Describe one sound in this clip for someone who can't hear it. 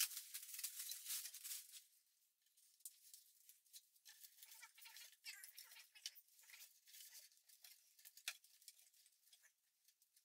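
Plastic leaves rustle and crinkle as hands arrange artificial plants.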